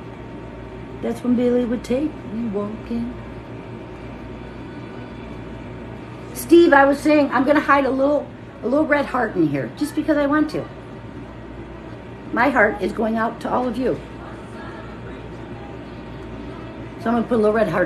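A middle-aged woman talks calmly and close by, in short bursts.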